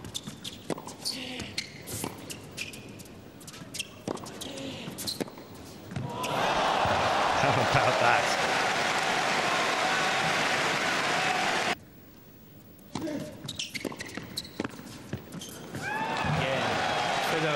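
A tennis ball is struck back and forth with sharp pops in a large echoing hall.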